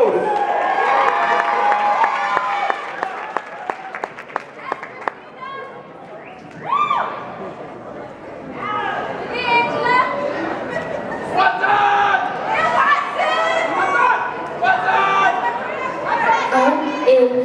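Upbeat dance music plays loudly over speakers in a large hall.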